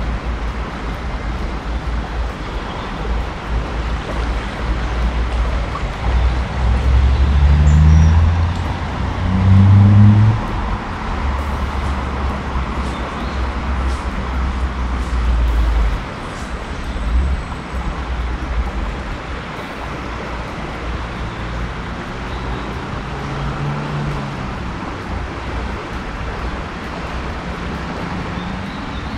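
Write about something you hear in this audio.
A shallow river flows and ripples steadily outdoors.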